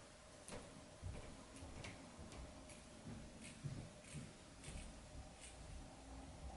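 Scissors snip through fabric in short, repeated cuts.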